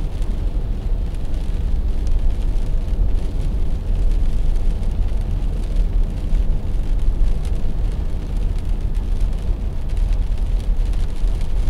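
A car's engine and tyres rumble steadily on a wet road.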